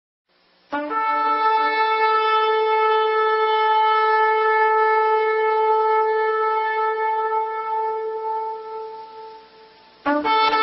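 A trumpet blows a long, steady note that slowly fades.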